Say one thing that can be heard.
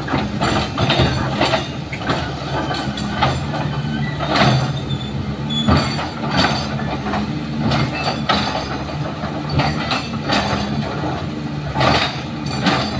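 Concrete and rubble crash and crack as an excavator breaks a wall.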